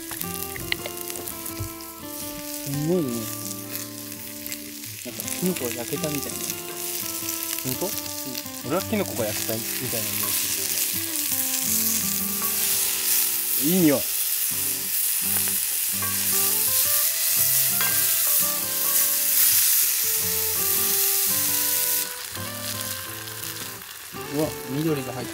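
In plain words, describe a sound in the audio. Mushrooms sizzle in a hot pan.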